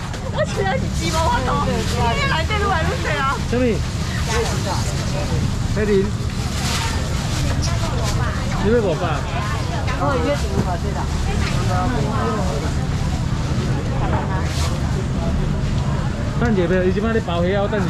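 A crowd of men and women chatter and call out all around.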